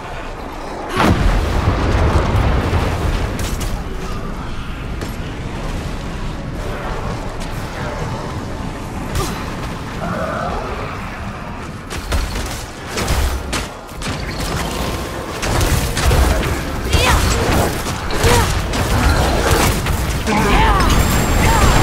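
Fire spells whoosh and crackle in a game.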